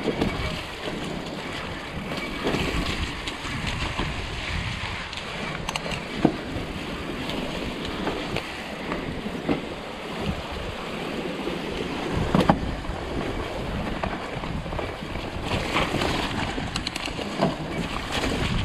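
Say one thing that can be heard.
Bicycle tyres roll and crunch over a rough, muddy trail.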